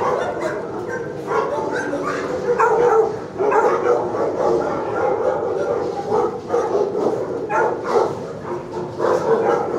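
A dog whines softly close by.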